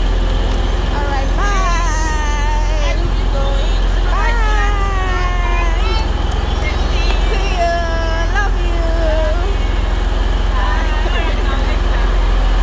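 A young girl talks in a high voice nearby.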